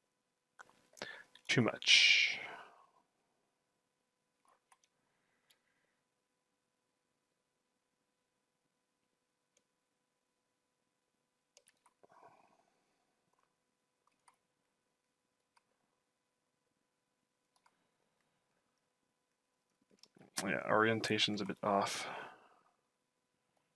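A man speaks briefly into a microphone, close and casual.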